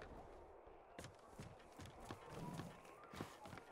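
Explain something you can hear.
Footsteps knock on wooden floorboards.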